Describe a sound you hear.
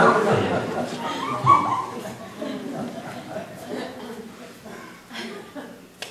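A man speaks loudly and theatrically in a large room.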